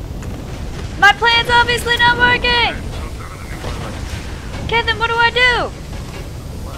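A young woman speaks into a close microphone with animation.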